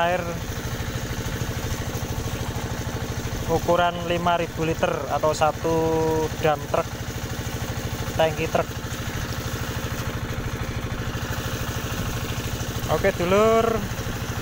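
Water gushes from a pipe and splashes into a pool.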